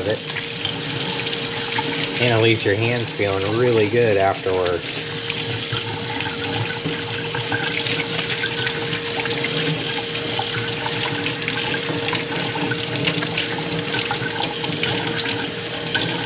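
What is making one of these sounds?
Wet hands rub together.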